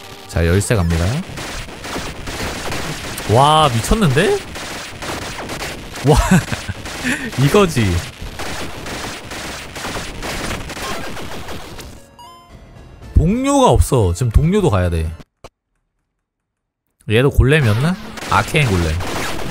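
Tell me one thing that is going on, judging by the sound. Magical zaps and blasts burst in quick succession.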